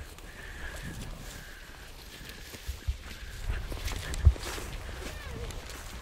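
Footsteps crunch through dry grass.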